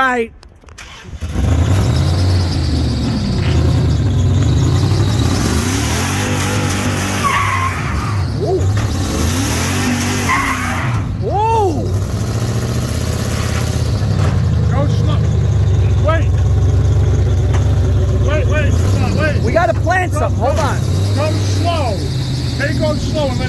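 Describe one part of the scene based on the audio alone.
A pickup truck engine roars loudly as it revs.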